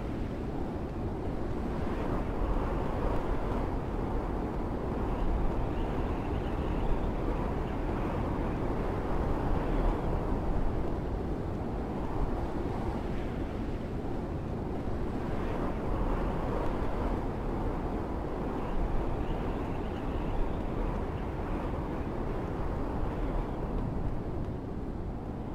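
Footsteps shuffle softly on a hard rooftop.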